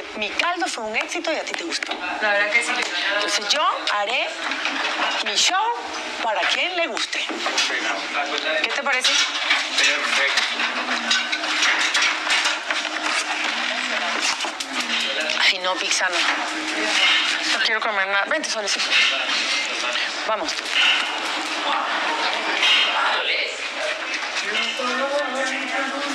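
Several women and a man chatter with one another at a distance in a room with a slight echo.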